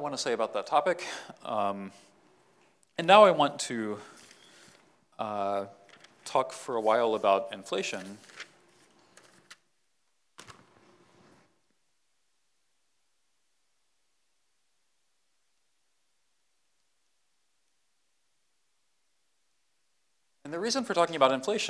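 A man lectures calmly, heard through a microphone in a large hall.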